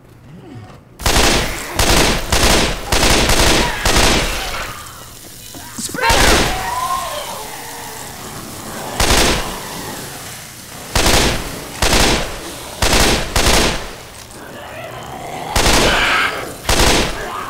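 A rifle fires in loud bursts.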